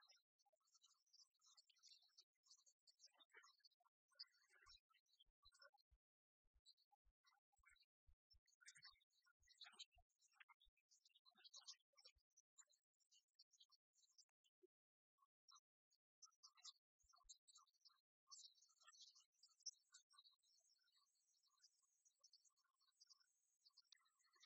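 Game pieces click on a wooden table.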